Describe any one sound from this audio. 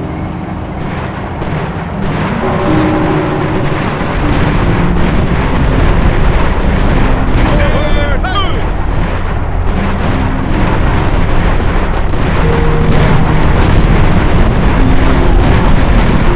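Rapid gunfire crackles in a battle.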